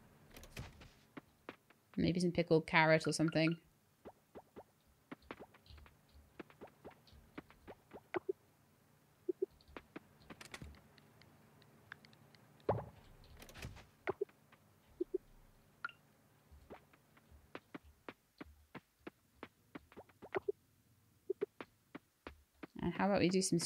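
Short soft clicks tick now and then.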